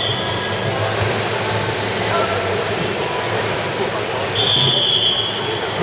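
Swimmers splash and churn through the water in an echoing indoor pool.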